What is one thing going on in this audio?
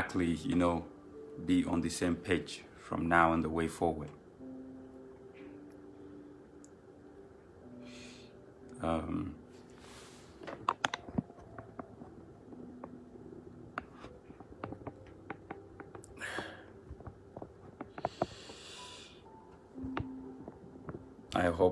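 A young man speaks calmly, close to a phone microphone, with long pauses.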